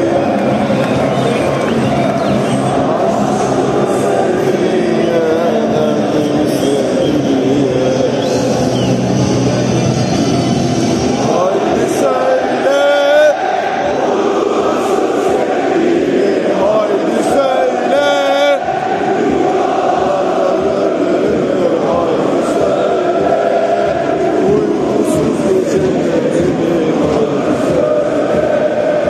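Young men chant loudly close by.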